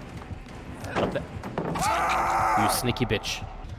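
A heavy wooden pallet slams down with a crash.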